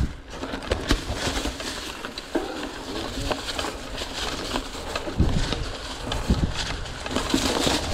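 Twigs and dry grass crackle under bicycle tyres.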